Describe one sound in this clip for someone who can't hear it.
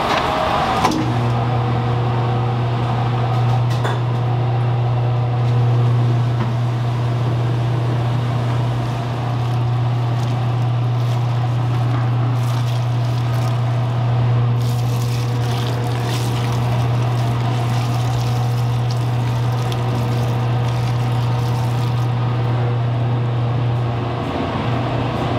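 A mixer motor hums steadily.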